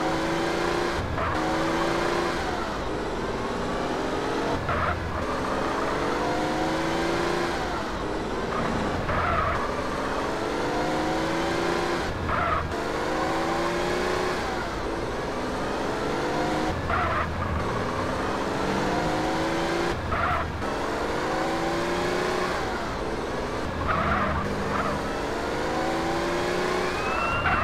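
A car engine revs up again and again as it shifts through the gears.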